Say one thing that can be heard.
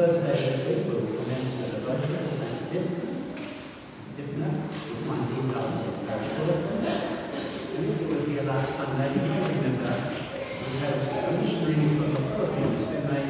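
A congregation sings together in a large, echoing hall.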